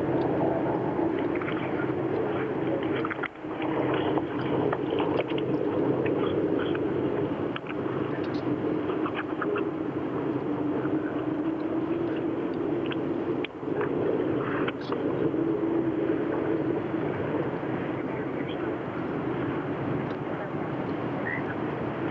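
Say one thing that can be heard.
A large outdoor crowd murmurs and chatters steadily.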